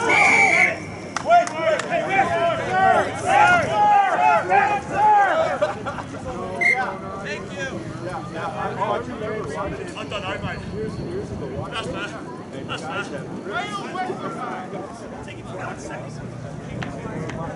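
Rugby players call out to each other across an open field.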